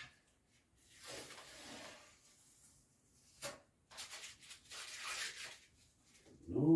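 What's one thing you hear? Plastic or paper rustles as a man handles it.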